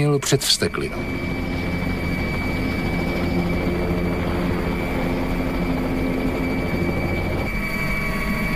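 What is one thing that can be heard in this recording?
A helicopter's rotor and engine drone steadily overhead.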